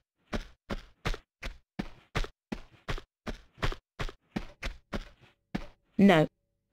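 Quick footsteps thud on hard floor at a run.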